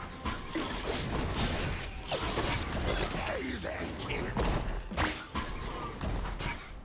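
Sharp hits land again and again in a game fight.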